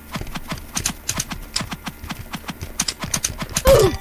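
A sword strikes repeatedly with quick hits.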